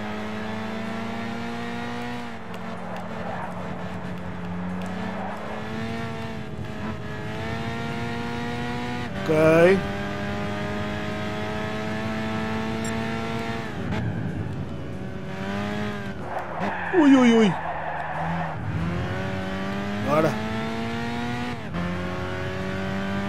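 A racing car engine roars, rising in pitch and dropping with each gear change.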